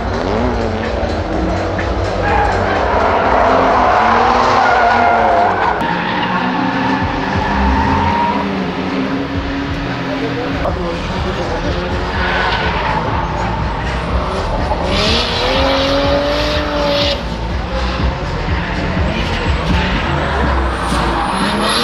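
Tyres screech loudly on tarmac.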